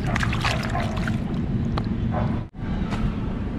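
Water splashes as hands rub fish.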